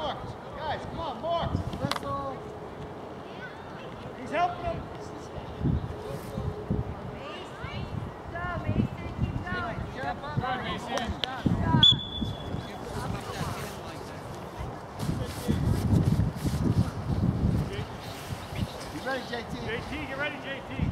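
Children and adults shout and cheer outdoors.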